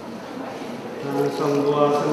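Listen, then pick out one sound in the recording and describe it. A congregation sings together.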